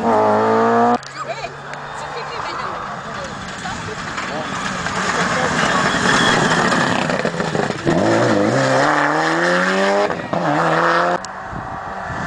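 A rally car engine roars and revs hard as the car approaches and passes close by.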